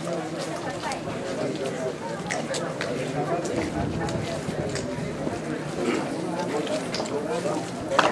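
Many footsteps shuffle over cobblestones.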